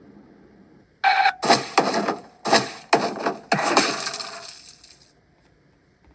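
A game on a tablet plays loud crashing sound effects.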